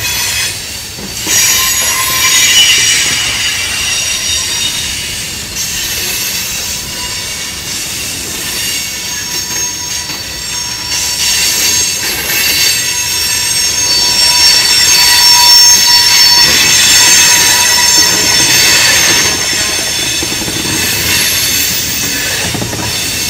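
A freight train rolls past close by, wheels clacking over the rail joints.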